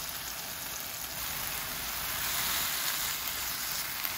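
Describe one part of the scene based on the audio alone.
Beaten egg pours into a hot pan and sizzles louder.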